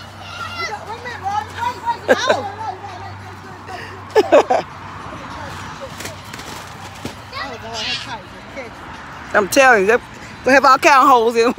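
A young child squeals and shouts excitedly nearby.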